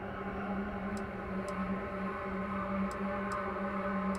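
Soft interface clicks tick as menu items change.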